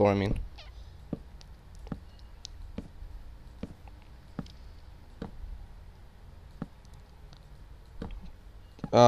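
Soft knocks of wooden blocks being broken repeat at a steady pace.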